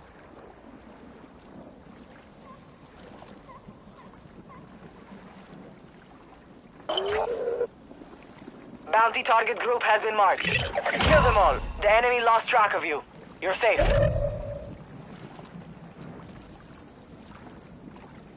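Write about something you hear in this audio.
Water splashes softly with swimming strokes.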